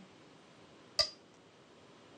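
A stone clicks onto a game board.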